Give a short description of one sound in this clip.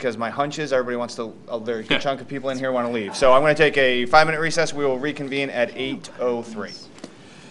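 A man speaks calmly over a microphone.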